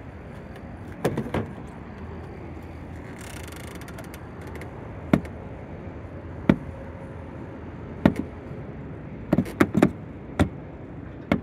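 A charging plug clicks and knocks as it is handled and pushed into its socket.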